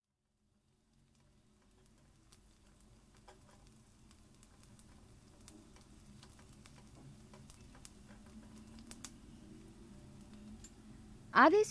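Onions sizzle softly in hot oil.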